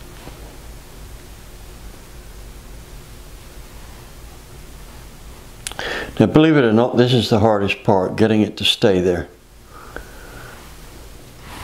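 Metal parts scrape and click softly against each other.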